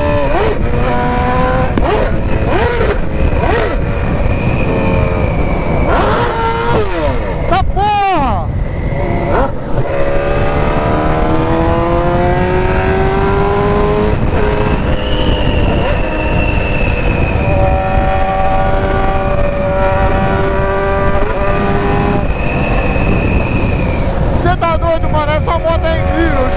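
A motorcycle engine roars at speed, its pitch climbing and dropping as it shifts gears.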